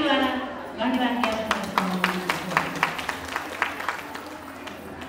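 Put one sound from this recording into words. A man claps his hands quickly.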